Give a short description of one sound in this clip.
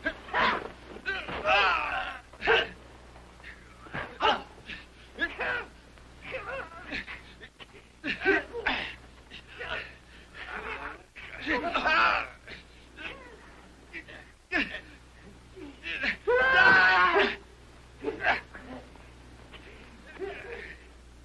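Blows thud during a fistfight.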